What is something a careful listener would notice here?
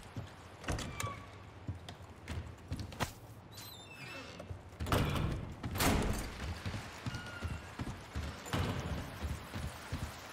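Footsteps thud on wooden boards.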